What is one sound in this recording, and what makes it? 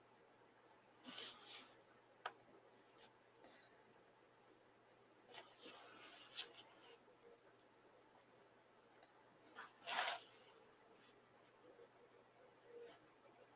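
A pen scratches lightly on paper in short strokes.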